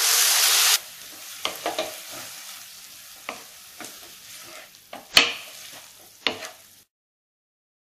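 Chopped vegetables are stirred in a frying pan.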